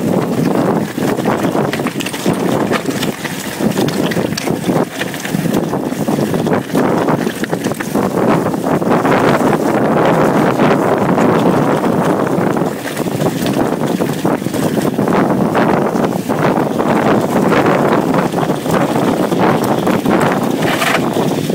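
Wind buffets loudly against a nearby microphone.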